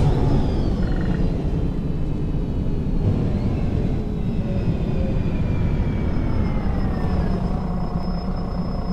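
A bus's brakes whine as the bus slows.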